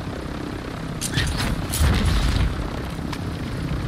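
Wind rushes past during a parachute descent.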